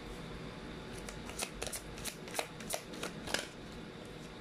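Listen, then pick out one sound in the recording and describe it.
Playing cards riffle and flick with quick soft clicks.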